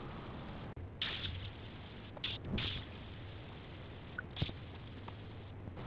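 A spray gun hisses as paint is sprayed.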